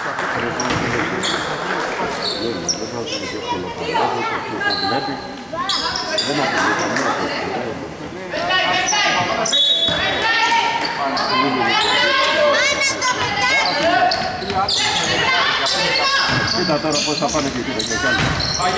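Young women players call out and shout to each other.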